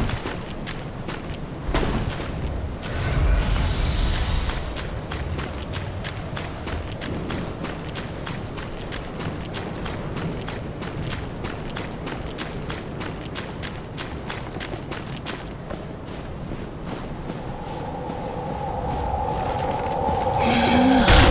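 Armoured footsteps crunch quickly through snow.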